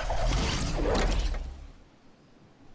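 Wind rushes loudly, then quickly fades.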